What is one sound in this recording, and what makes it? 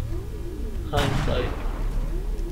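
A laser gun fires with a sharp crack and a ringing tail.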